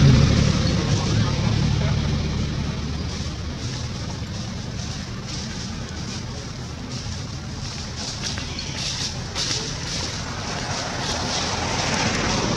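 Leaves and twigs rustle as a small monkey tugs at a branch.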